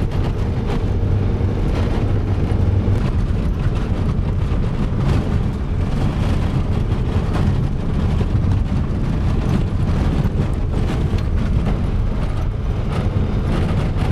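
Tyres rattle and crunch over a rough gravel road.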